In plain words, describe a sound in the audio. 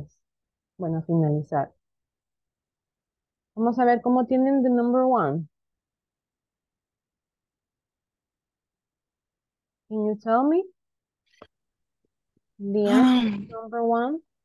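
A young woman speaks calmly over an online call, in short phrases with pauses.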